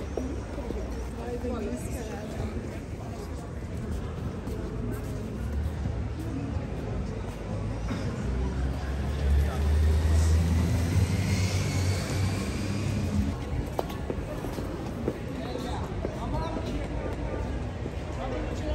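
Voices of passers-by murmur along a busy street.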